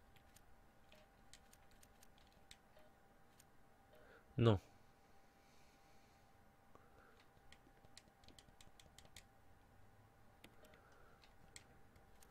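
Keypad buttons click softly with each press.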